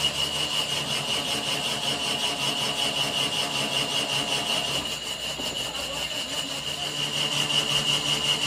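A cutting tool scrapes a high, steady whine from a turning metal shaft.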